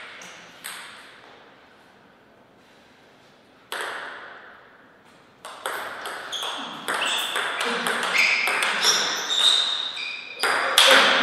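Paddles strike a table tennis ball back and forth in a rally.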